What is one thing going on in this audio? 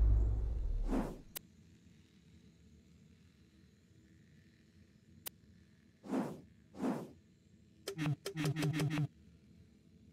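Menu sounds whoosh and click in a video game.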